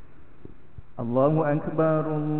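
A young man chants in a melodic voice through a microphone and loudspeakers.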